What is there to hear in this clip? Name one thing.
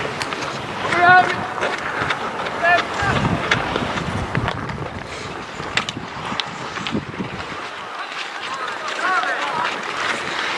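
Male players shout across the rink outdoors.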